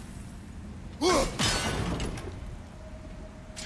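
A heavy metal mechanism clanks and creaks.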